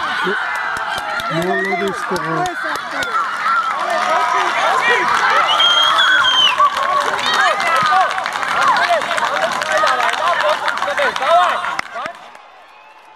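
Young boys shout and cheer excitedly outdoors.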